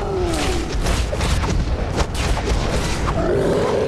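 Blows land with heavy thuds and whooshes in a fight.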